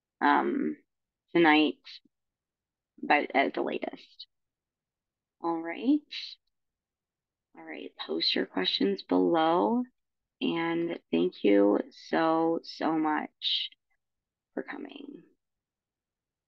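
A young woman talks calmly over an online call.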